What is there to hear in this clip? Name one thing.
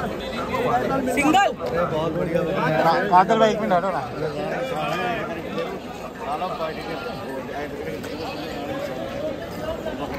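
Men talk loudly and with animation close by.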